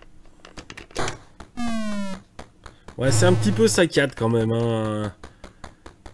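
Retro video game sound effects beep and chirp in quick bursts.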